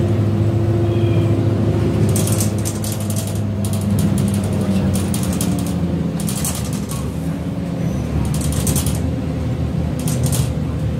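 A bus engine rumbles and hums steadily from inside the cabin.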